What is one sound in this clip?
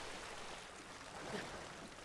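Water splashes as a swimmer paddles.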